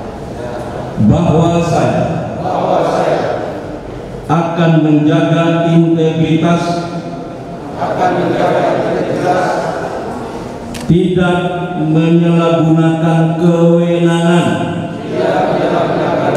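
An elderly man reads out solemnly into a microphone, heard through loudspeakers.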